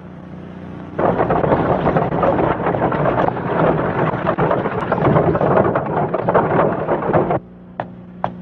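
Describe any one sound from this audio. Horse hooves clop on a dirt road.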